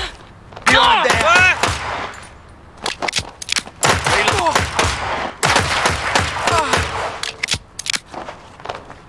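Gunshots fire in rapid bursts with ringing echoes.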